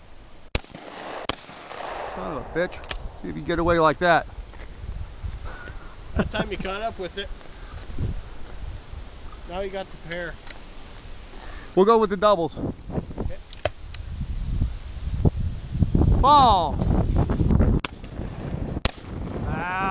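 A shotgun fires outdoors.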